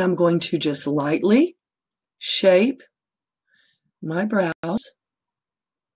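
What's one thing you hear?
A woman talks calmly and close up, in short bursts with pauses.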